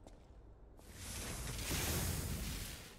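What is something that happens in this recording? A fiery explosion bursts and roars.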